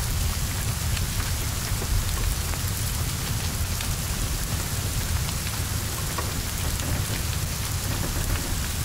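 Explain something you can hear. A fire roars and crackles close by.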